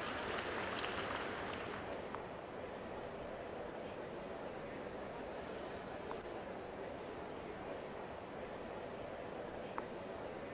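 A large crowd murmurs steadily.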